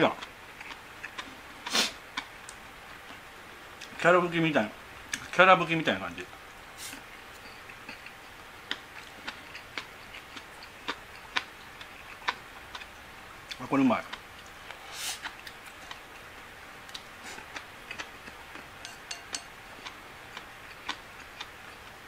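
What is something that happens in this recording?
Chopsticks click softly against a bowl.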